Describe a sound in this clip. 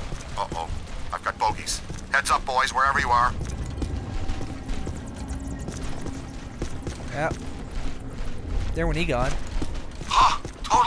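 A glowing portal hums with a low, steady rumble.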